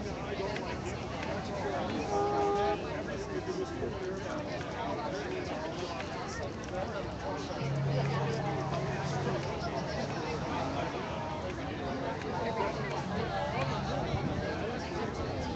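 A large crowd chatters outdoors, with many men and women talking at once.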